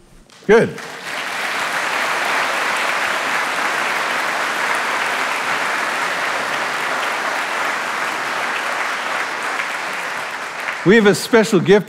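A congregation applauds in a large hall.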